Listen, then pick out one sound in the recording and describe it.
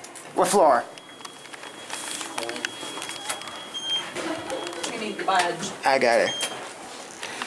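An elevator button beeps when pressed.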